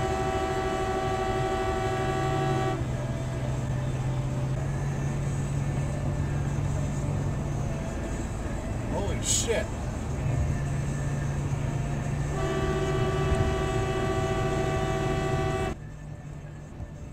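Tyres hum steadily on a wet road from inside a moving car.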